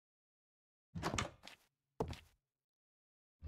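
A wooden door opens and shuts with a knock.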